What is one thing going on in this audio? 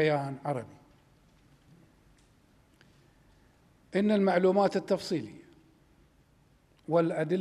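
A middle-aged man speaks calmly and slowly into microphones, with long pauses.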